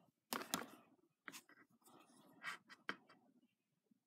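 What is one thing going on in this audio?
Plastic discs click and scrape against each other under fingers.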